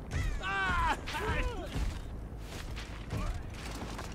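Wooden planks crack and splinter as a pallet is smashed.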